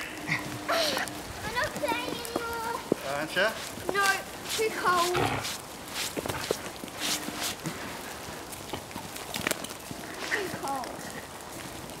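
A young girl shouts and squeals playfully close by.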